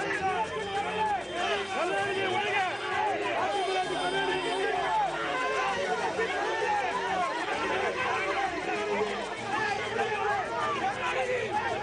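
A crowd of men shouts and clamours loudly close by.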